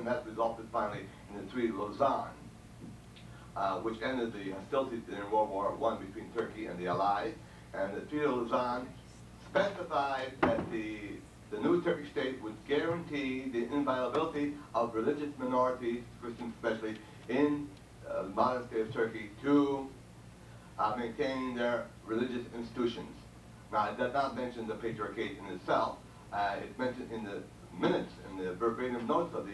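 An elderly man speaks steadily into a microphone in a room with some echo.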